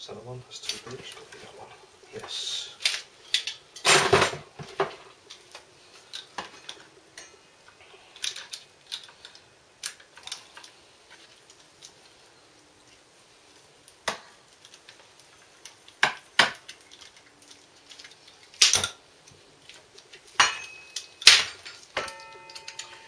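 Metal tools clink and clatter on a hard floor.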